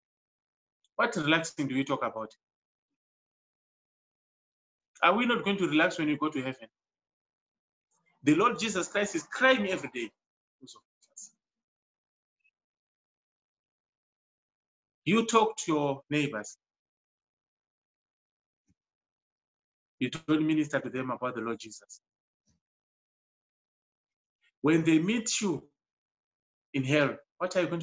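A man speaks calmly in short phrases into a microphone, with pauses between them.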